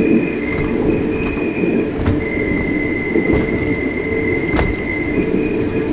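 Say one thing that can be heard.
A suspended train rumbles and squeals steadily along its overhead track.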